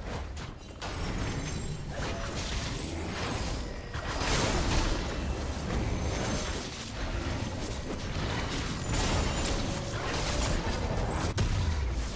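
Spells and attacks clash and crackle in a fast game battle.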